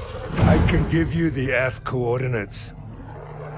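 A creature snarls and growls menacingly.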